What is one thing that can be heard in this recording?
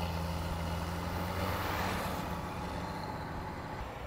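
A motorbike drives past and fades away.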